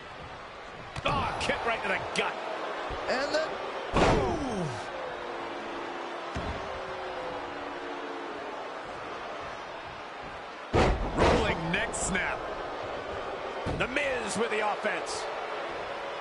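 Heavy thuds of bodies slamming onto a wrestling mat.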